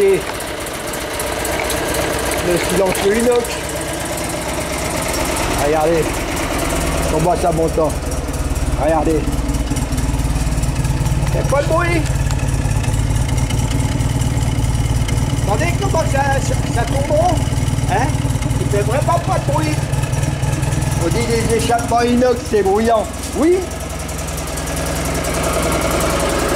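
A car engine idles with a steady, low rumble.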